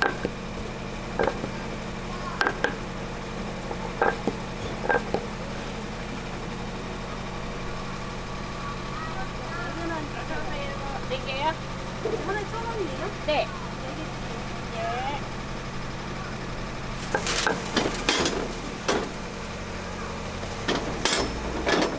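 A wooden rolling pin knocks and thumps on a wooden board.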